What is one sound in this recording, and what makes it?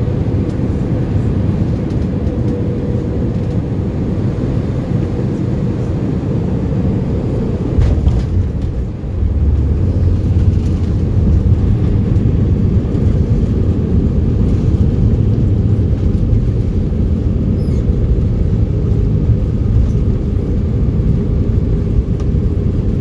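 Aircraft tyres rumble over the runway.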